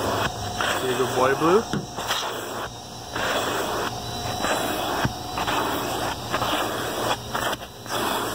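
A dog pants loudly and quickly close by.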